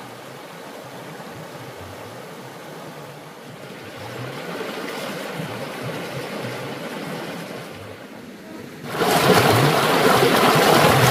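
A stream flows steadily over rocks.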